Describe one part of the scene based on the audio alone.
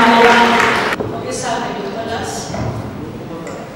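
A middle-aged woman speaks calmly into a microphone in an echoing hall.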